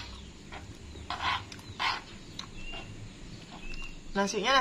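Crunchy food crackles as a woman chews.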